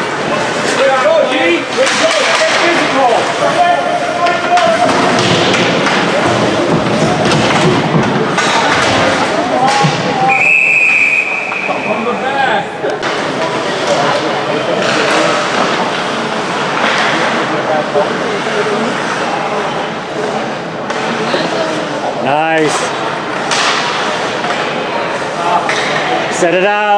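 Ice skates scrape across an ice rink.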